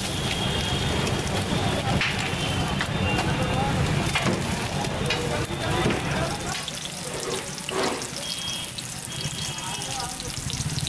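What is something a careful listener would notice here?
Oil sizzles and crackles softly in a pan.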